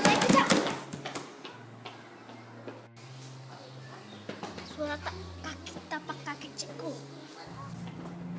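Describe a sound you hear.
A young girl speaks excitedly up close.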